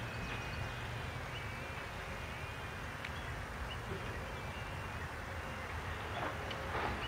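Wind blows steadily outdoors, rumbling low.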